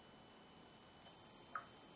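Music from a game starts playing through a small phone speaker.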